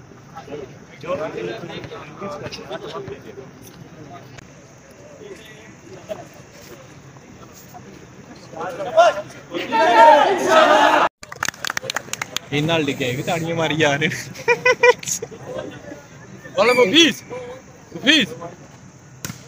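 Young men talk and shout excitedly outdoors.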